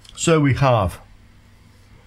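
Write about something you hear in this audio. A man speaks calmly and close up into a microphone.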